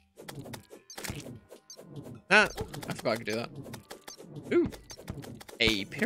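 A sword swishes repeatedly in a video game.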